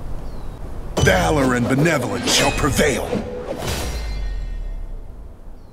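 A sword swishes and rings through the air.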